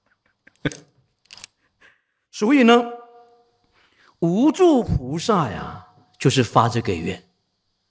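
A man speaks calmly and slowly into a microphone, in short phrases with pauses.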